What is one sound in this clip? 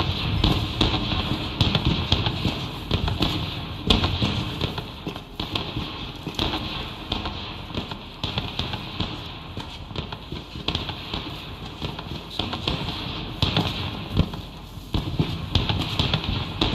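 Footsteps crunch softly on dry grass and dirt.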